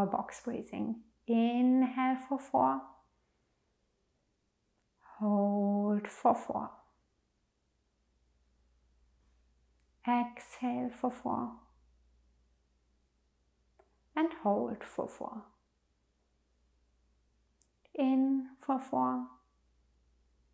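A young woman speaks calmly and softly into a close microphone, in short phrases with pauses.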